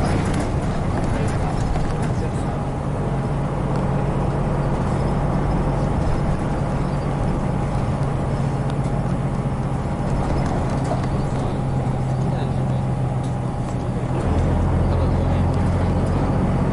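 A diesel city bus engine drones, heard from inside the bus.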